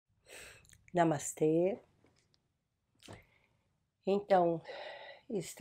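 An older woman speaks calmly and softly, close to a microphone.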